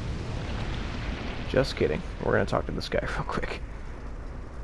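Flames burst out with loud roaring whooshes.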